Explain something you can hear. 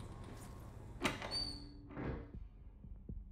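A heavy wooden lid creaks and thumps shut.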